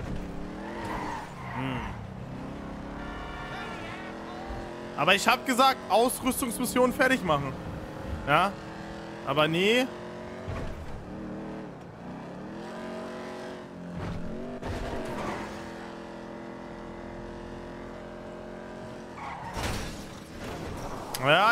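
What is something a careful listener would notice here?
A car engine hums and revs as a car drives.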